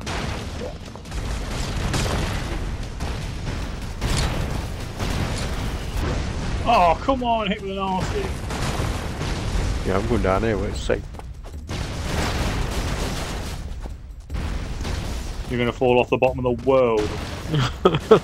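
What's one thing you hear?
Explosions boom and crackle repeatedly.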